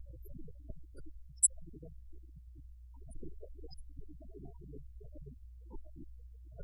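A middle-aged woman speaks calmly into a microphone.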